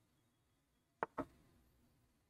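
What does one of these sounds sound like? A chess piece clicks sharply into place, twice in quick succession.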